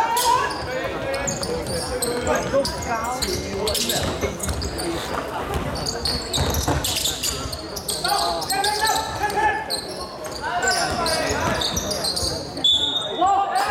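Sneakers squeak on a wooden court in an echoing hall.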